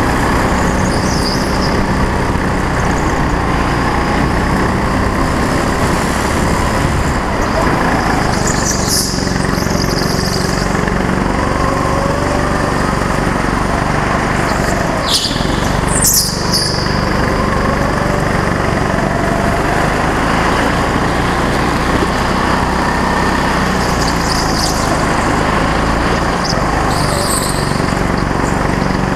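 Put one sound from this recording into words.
Kart tyres squeal on the track in short bursts through the corners.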